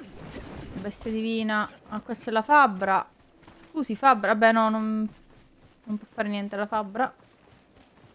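A young woman speaks expressively into a close microphone.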